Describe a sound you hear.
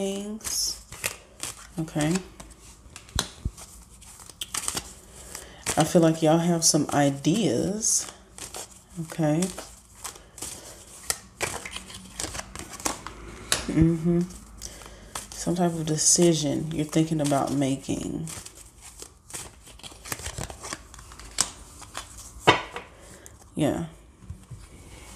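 Playing cards are shuffled by hand.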